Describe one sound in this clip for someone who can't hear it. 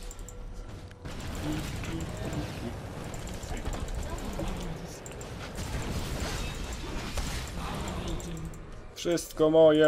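Fighting creatures in a game clash amid crackling spell blasts.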